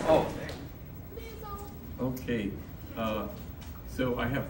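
An elderly man speaks calmly into a microphone, heard over a loudspeaker.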